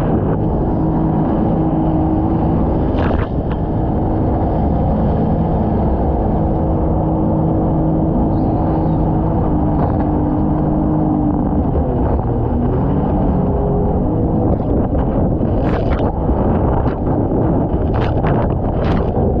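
Water rushes and churns against a boat hull.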